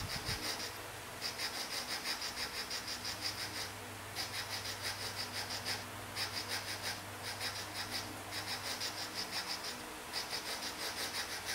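A game plays rapid bursts of crunchy grating sounds.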